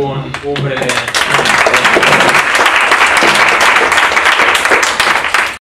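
An audience applauds loudly in a room.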